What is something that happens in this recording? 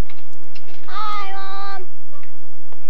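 A young child calls out in a high voice.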